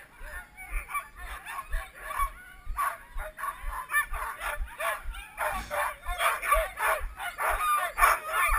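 Many dogs bark, yelp and howl excitedly nearby.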